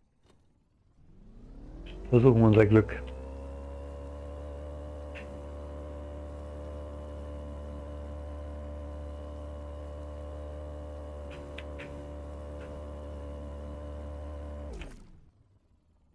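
A boat's outboard motor starts, roars loudly at a steady pitch and then cuts out.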